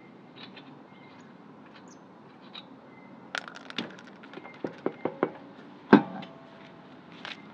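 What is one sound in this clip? Metal lug nuts clink and rattle as a wrench loosens them.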